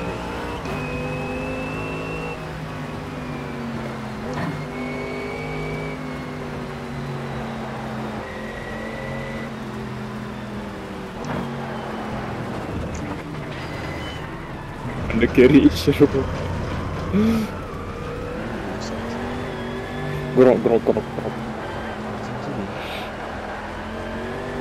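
Rain patters on a car's windscreen.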